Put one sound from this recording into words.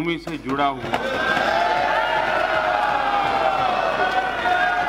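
A crowd of men cheers and chatters loudly.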